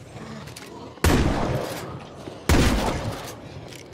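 A rifle fires two loud shots close by.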